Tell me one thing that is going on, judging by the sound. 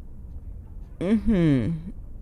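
A young woman speaks briefly and with animation into a microphone.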